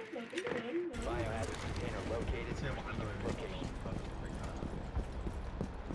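Boots run on hard ground.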